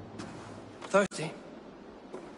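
A man asks a short question in a low voice.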